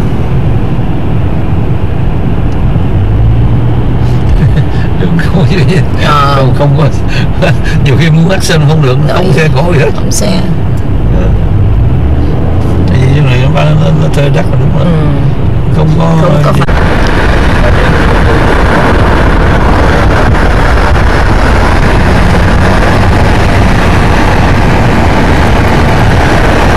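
Tyres roll with a low rumble on the road.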